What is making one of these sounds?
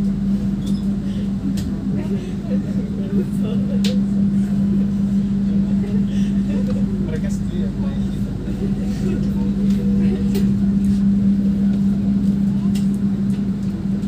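Train wheels click and rattle over the rails.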